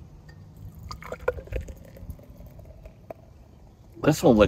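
Beer pours and fizzes into a glass.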